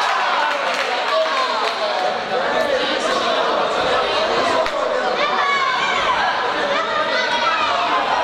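A crowd shouts and cheers throughout in a large echoing hall.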